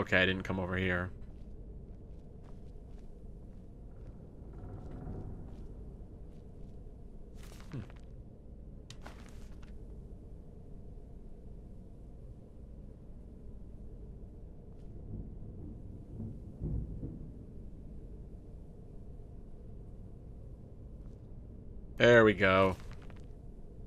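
A man speaks briefly and casually into a close microphone.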